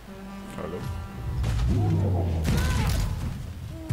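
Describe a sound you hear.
Armoured players crash together in a tackle.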